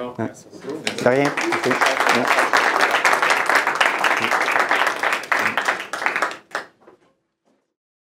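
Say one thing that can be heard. A small audience applauds.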